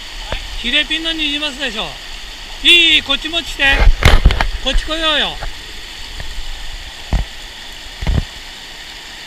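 A shallow river rushes and gurgles over rocks nearby.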